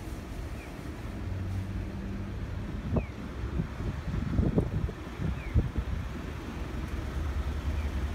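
A truck engine idles close by.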